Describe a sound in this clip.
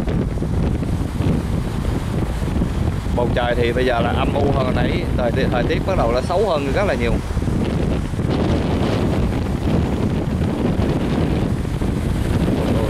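Strong wind roars outdoors.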